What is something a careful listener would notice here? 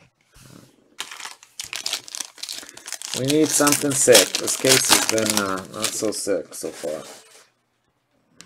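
Foil wrapping crinkles and tears.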